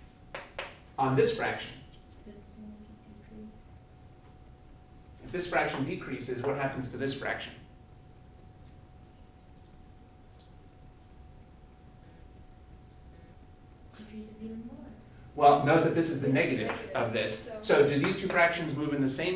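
A man lectures calmly.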